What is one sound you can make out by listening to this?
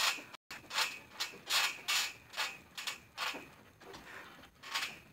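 A trampoline mat thumps and creaks as a young man bounces.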